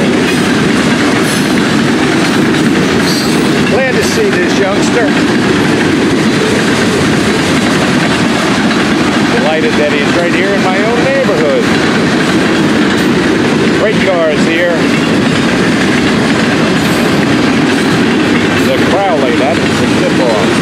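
A freight train rumbles past close by, steadily and loudly.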